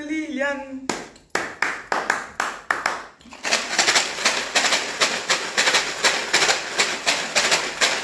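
A woman claps her hands in a quick rhythm.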